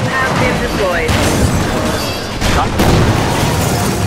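A car crashes with a loud crunching impact.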